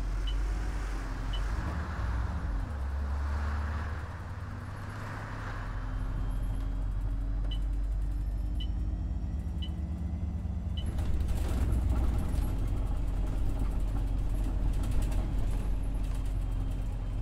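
A diesel bus engine hums as the bus drives along.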